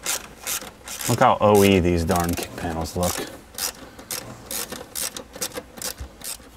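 A screwdriver clicks and scrapes against plastic parts.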